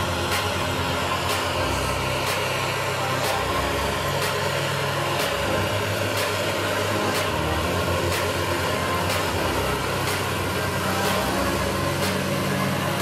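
A tractor engine drones steadily close by.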